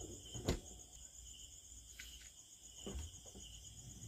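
A refrigerator door thumps shut.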